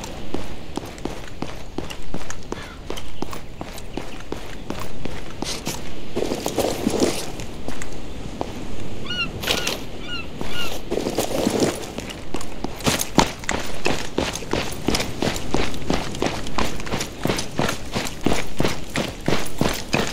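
Footsteps crunch steadily on a gravel road.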